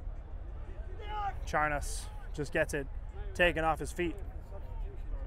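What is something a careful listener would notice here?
Young men shout loudly across an open field.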